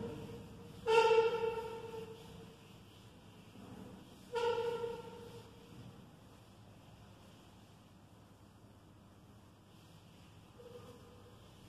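A cloth wipes softly across a whiteboard.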